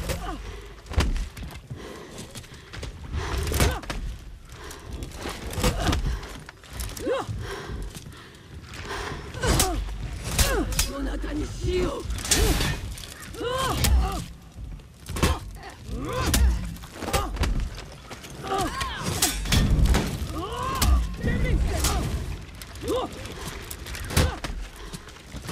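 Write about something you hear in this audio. Metal blades clash and clang in close combat.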